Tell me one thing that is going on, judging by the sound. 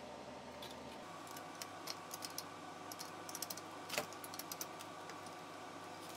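A metal wrench clicks and scrapes against a nut.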